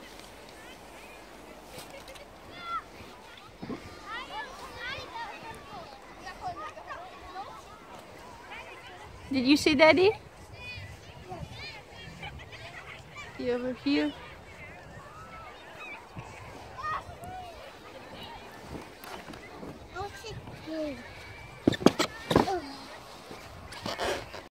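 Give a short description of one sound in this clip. Children shout and call out in the distance outdoors.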